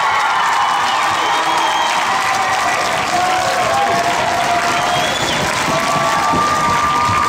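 Young girls scream and cheer excitedly.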